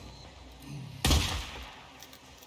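A gunshot rings out.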